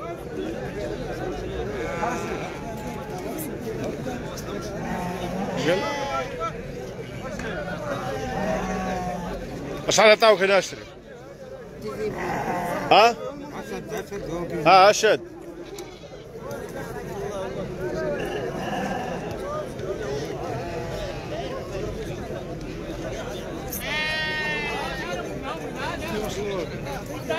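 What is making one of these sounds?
Several men talk at once in a busy outdoor crowd.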